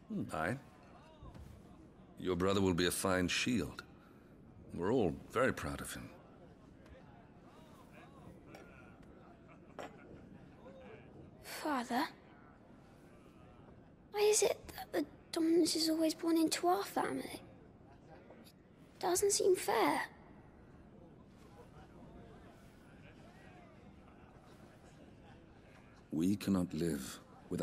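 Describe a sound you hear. A man speaks calmly and warmly.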